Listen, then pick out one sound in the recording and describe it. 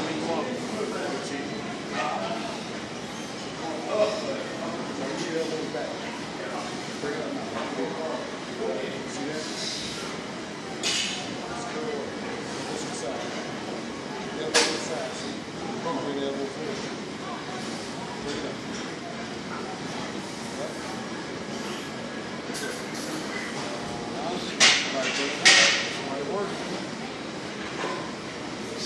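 A man talks nearby calmly.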